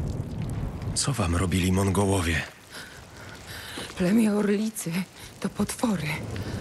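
A man speaks with worry.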